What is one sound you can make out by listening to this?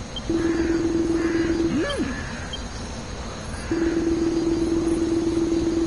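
A steady electronic tone sounds.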